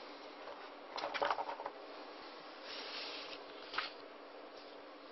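Sheets of paper rustle and shuffle in someone's hands close by.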